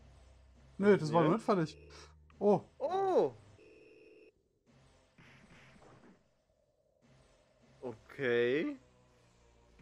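Retro video game punches land with short electronic thuds.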